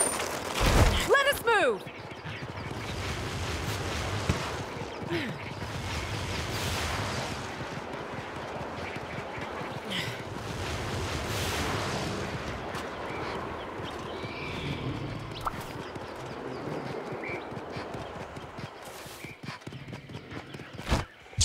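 Hooves pound on dirt as a mount gallops along.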